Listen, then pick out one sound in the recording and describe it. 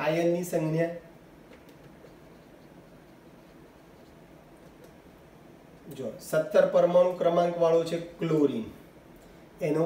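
A man speaks calmly and clearly close by, explaining with pauses.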